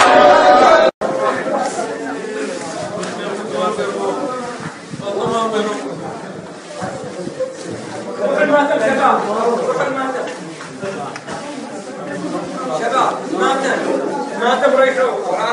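Men weep and wail loudly close by.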